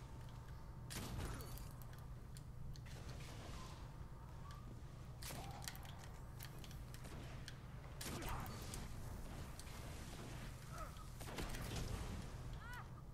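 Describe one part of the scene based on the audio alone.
Gunshots crack faintly in a video game.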